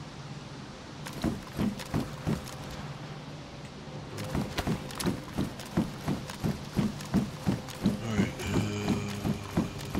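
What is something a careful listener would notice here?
Footsteps clank steadily on a metal walkway.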